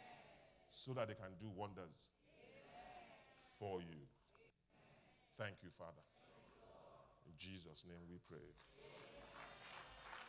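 A man speaks with animation through loudspeakers in a large hall.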